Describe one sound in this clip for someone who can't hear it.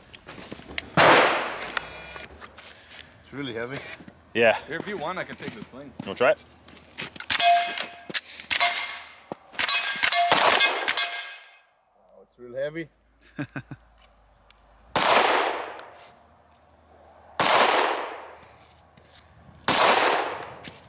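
Pistol shots ring out loudly outdoors and echo away.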